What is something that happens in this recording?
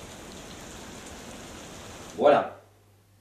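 Rain patters steadily on water.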